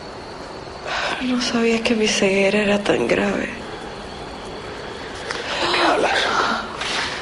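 A woman speaks softly and with distress up close.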